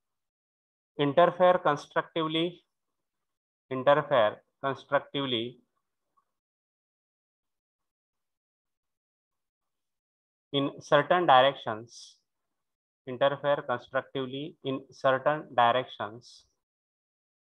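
A man lectures calmly through a microphone, pausing between phrases.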